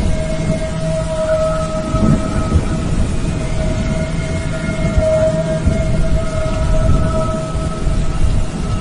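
A jet engine roars steadily overhead.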